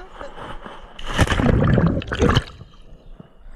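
Water splashes loudly as a person falls in.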